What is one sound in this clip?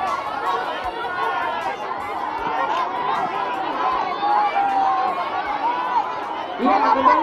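A large crowd of children chatters and shouts loudly close by.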